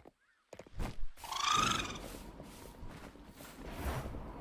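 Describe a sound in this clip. A rushing whoosh sweeps past in a burst of wind.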